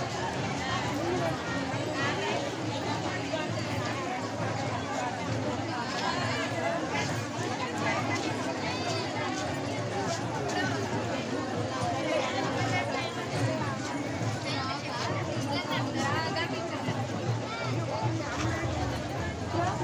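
A large crowd of women chatters and calls out outdoors.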